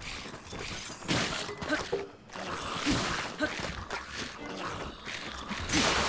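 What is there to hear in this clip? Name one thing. Swords clash and bones clatter in a fight.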